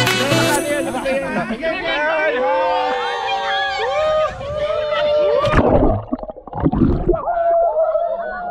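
Water splashes around people in a pool.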